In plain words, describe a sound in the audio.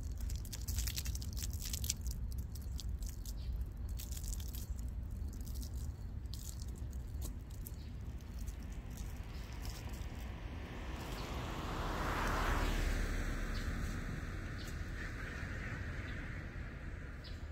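Rubber boots splash on wet pavement.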